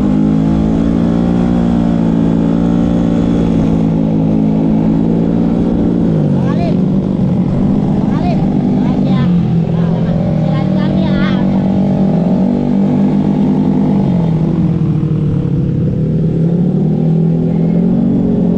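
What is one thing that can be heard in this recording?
A motorcycle engine hums steadily and rises and falls in pitch.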